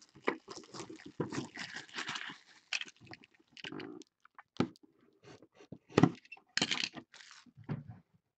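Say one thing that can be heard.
Plastic wrap crinkles and crackles as it is torn off.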